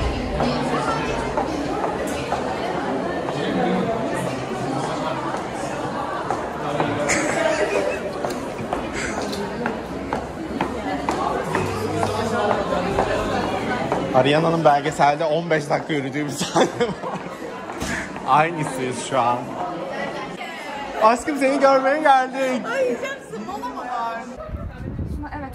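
Young women talk and laugh nearby.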